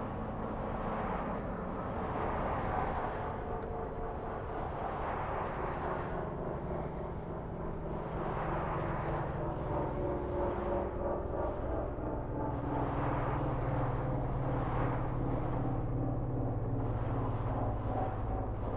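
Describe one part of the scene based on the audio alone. A truck engine hums steadily as the truck drives along.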